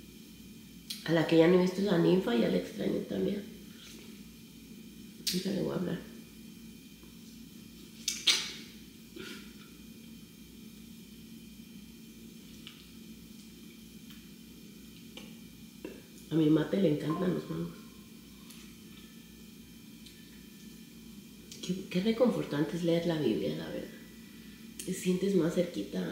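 A young woman talks casually, close by, in short bursts.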